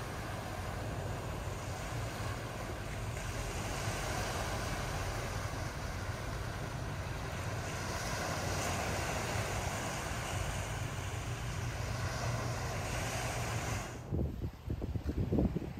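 Wind blows outdoors, rustling leafy plants.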